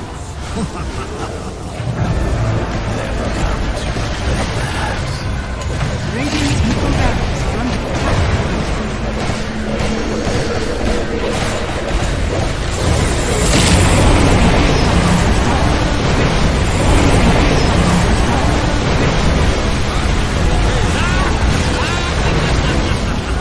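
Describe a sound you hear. Magic spells crackle and boom in a fierce battle.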